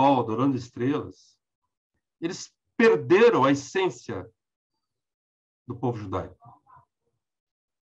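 A middle-aged man speaks with animation close to a microphone, in short bursts with pauses.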